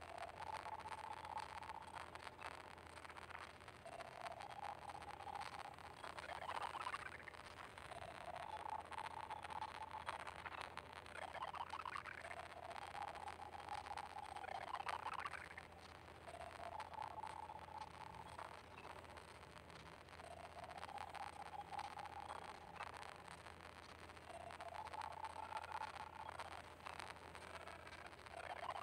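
Upbeat game music plays steadily.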